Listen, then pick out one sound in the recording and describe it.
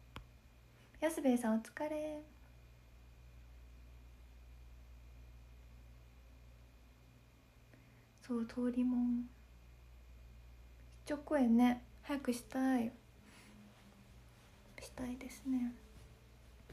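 A young woman talks softly and close to a microphone, in short bursts.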